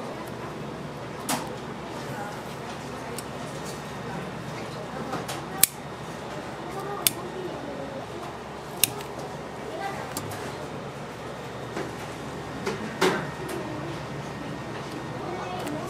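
Hands press and tap clay strips on a table.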